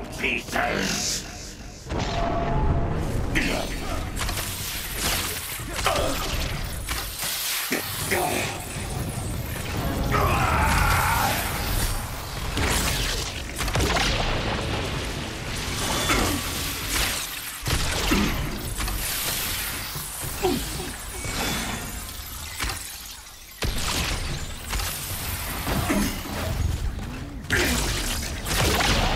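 Energy blasts and explosions burst repeatedly in a fast fight.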